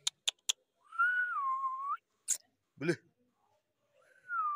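A dog whines softly.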